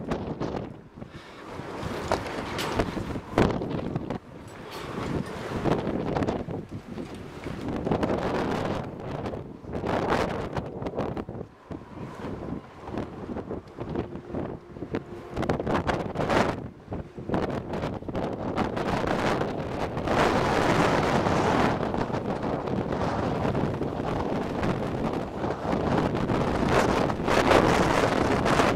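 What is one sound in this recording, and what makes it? Wind gusts loudly across an open outdoor space.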